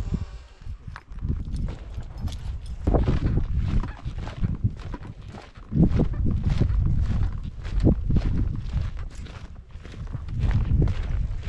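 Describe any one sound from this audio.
Footsteps crunch on a gravel track.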